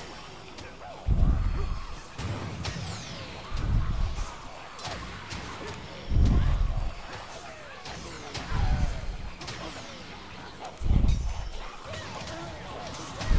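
Weapons clash and swish in a fight.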